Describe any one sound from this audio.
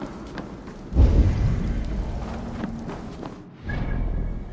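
A deep rushing whoosh swells and fades.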